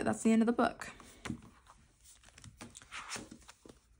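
A notebook closes with a soft flap.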